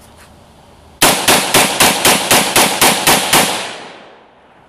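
A rifle fires a rapid string of sharp, loud shots outdoors.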